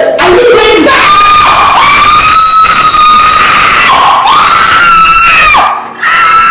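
A woman wails in long, high, drawn-out cries.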